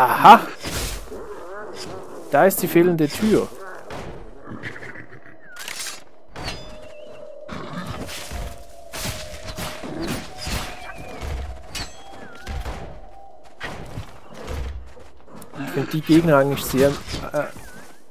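Sword strikes and hits ring out in a video game fight.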